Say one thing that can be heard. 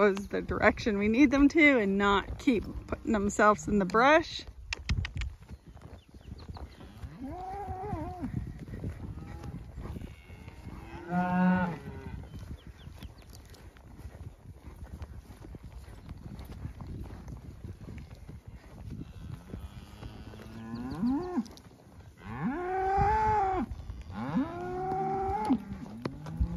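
Cattle moo loudly nearby, on and off.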